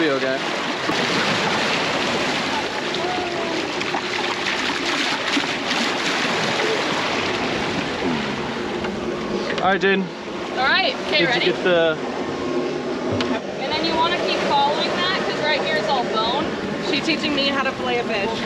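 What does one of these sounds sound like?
Water rushes and churns loudly alongside a moving boat.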